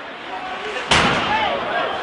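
A puck slams hard against the boards.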